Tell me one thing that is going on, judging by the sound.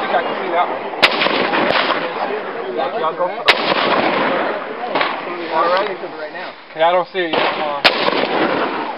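A rifle fires sharp, single shots close by.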